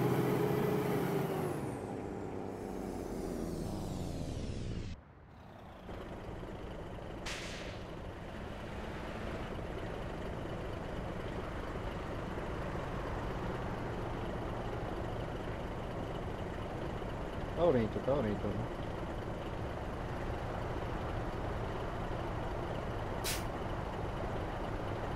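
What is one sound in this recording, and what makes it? A bus engine hums steadily as the bus drives along a road.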